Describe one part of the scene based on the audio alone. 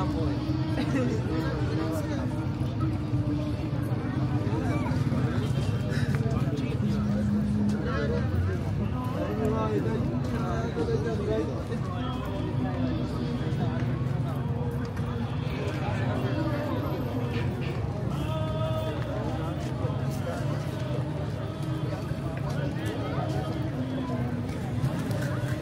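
Footsteps walk on pavement close by.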